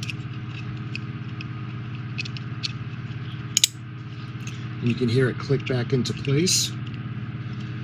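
Small plastic parts click and rattle as a toy is handled.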